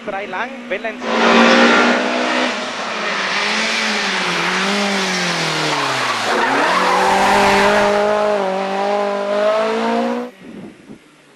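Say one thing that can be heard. A rally car engine roars loudly as the car races past and its pitch drops.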